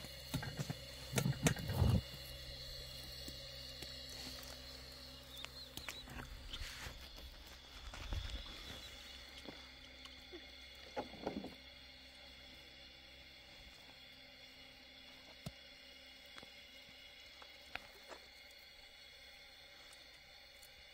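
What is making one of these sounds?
Hands knead and squish soft dough in a metal pot.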